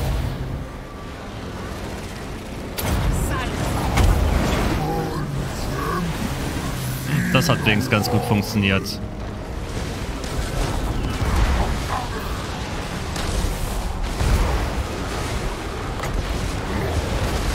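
Battle noise of clashing weapons rumbles throughout.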